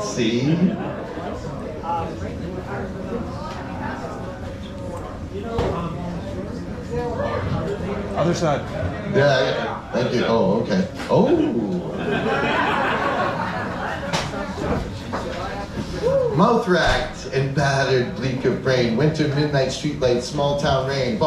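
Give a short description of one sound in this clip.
A man reads aloud with expression into a microphone, heard through loudspeakers.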